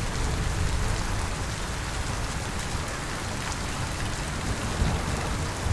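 Heavy rain pours steadily outdoors, splashing on hard ground.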